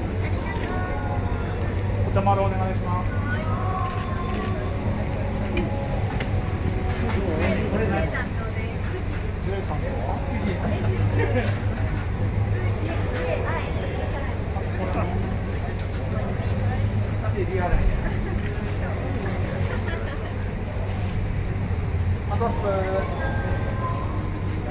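Young women speak and laugh cheerfully close by.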